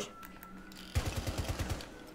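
Rapid gunshots fire in quick succession.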